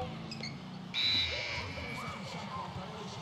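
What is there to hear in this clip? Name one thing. A buzzer sounds loudly.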